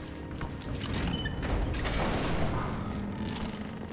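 A heavy metal lock mechanism clanks and whirs as it turns.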